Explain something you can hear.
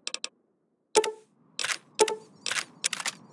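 Menu clicks tick in quick succession.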